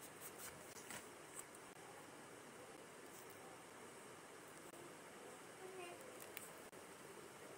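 A plastic palette clicks and rustles as it is handled.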